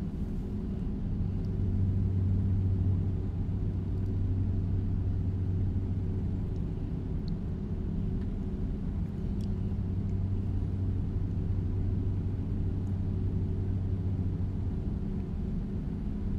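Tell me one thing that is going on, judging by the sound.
A truck engine rumbles steadily at cruising speed.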